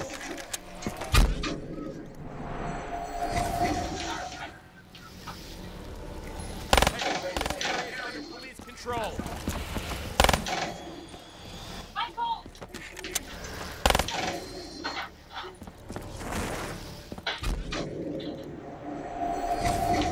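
A portal whooshes and roars.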